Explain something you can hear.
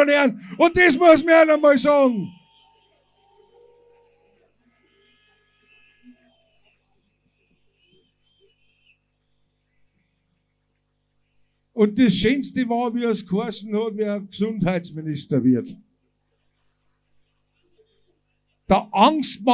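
A man speaks forcefully into a microphone over loudspeakers outdoors.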